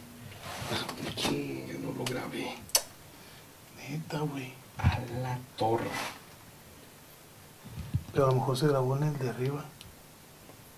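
Men talk quietly in low voices nearby.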